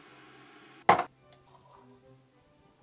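Hot water pours from a kettle into a mug.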